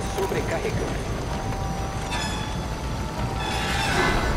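A metal valve wheel creaks as it turns.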